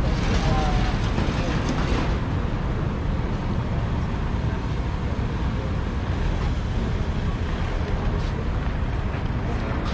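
Voices of a small crowd murmur nearby.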